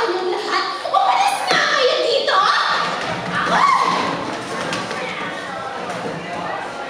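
A group of young voices sings together, heard from a distance in a large echoing hall.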